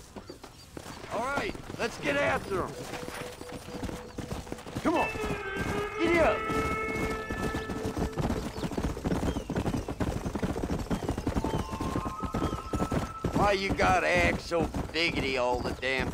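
Horse hooves gallop over dirt ground.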